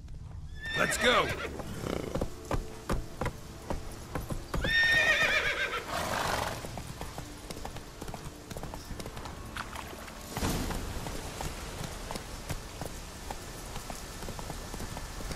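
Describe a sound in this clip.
A horse's hooves clop steadily on wooden planks and then on soft ground.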